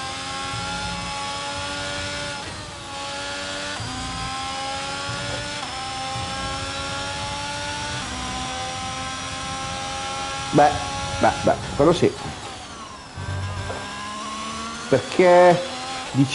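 A racing car engine whines steadily, rising in pitch through each gear and dropping at each shift.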